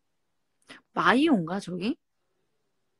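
A young woman speaks briefly and softly close to the microphone.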